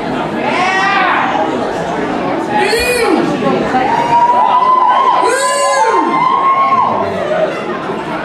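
A man sings into a microphone, heard through loudspeakers.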